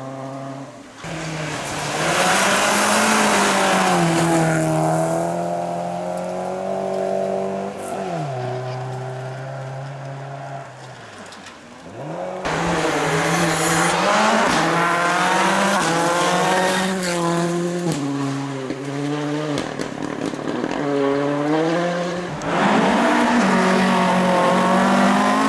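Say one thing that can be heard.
A rally car engine roars and revs hard as it speeds past.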